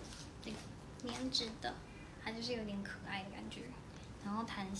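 A young woman speaks close by, calmly.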